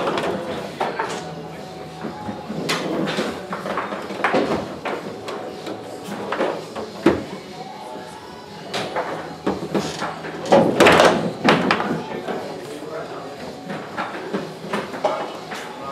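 A table football ball clacks sharply against the rods and walls.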